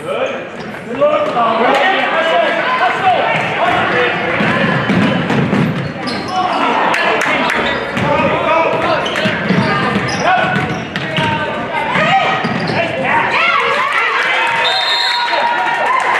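A crowd of spectators cheers and shouts loudly.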